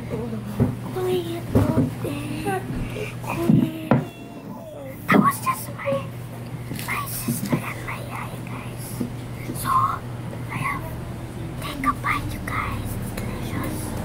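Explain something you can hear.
A young boy talks casually close by.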